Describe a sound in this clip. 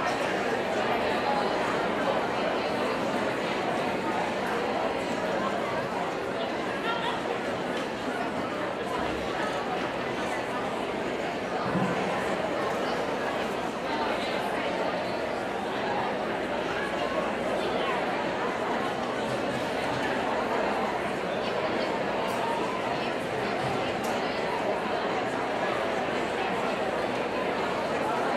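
A large audience murmurs and chatters in a big echoing hall.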